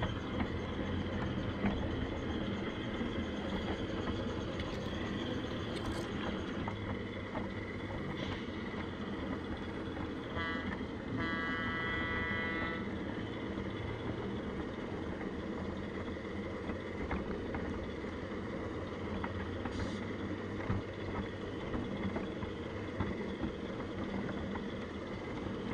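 A small garden train rumbles and clatters steadily along its track.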